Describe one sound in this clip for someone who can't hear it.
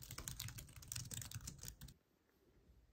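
Fingers tap quickly on a keyboard.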